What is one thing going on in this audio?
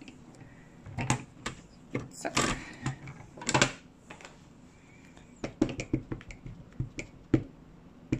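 A plastic tool knocks and clicks against a hard surface.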